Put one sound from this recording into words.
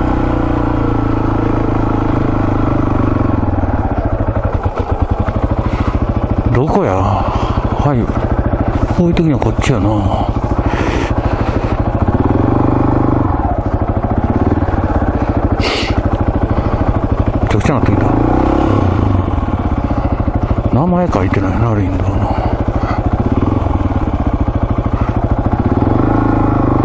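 A motorcycle engine idles and revs, rising and falling in pitch.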